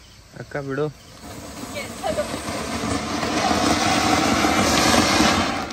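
A firework fountain hisses and crackles loudly, growing stronger.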